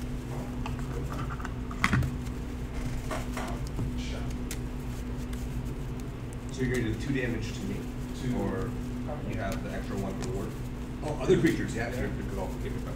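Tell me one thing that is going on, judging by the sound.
Playing cards riffle and slide together as a deck is shuffled by hand.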